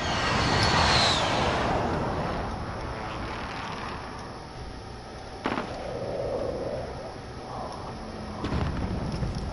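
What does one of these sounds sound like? Footsteps scuff on hard ground at a steady walking pace.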